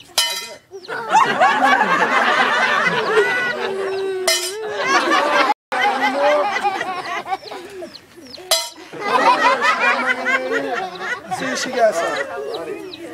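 Children laugh and shout outdoors.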